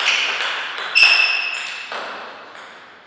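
A ping pong ball is struck back and forth with paddles.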